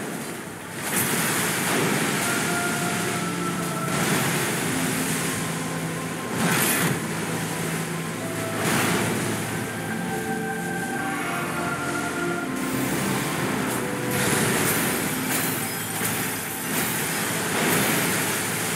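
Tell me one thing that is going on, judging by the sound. Water splashes heavily as a huge creature thrashes.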